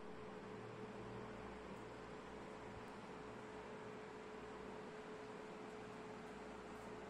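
A laptop fan whirs steadily with a faint constant hum.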